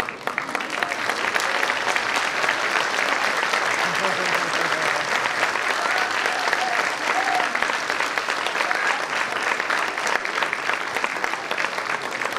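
Children's feet stamp on a wooden stage.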